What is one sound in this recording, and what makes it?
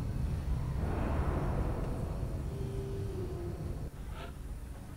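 A dropship's engines roar and whoosh, then fade.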